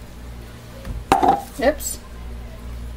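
A plastic cup knocks down onto a hard surface.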